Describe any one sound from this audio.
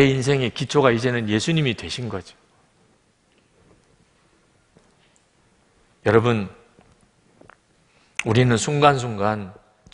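A middle-aged man speaks calmly into a microphone, pausing between phrases.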